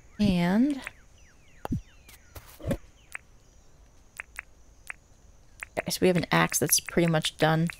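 Soft menu clicks tick quickly, one after another.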